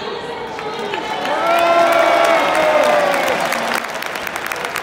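Fans in a stadium crowd cheer and sing loudly, then settle down.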